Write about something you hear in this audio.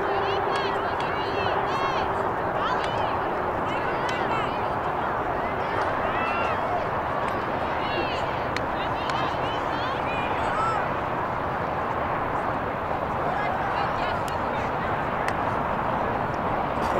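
Young players shout to each other in the distance across an open field.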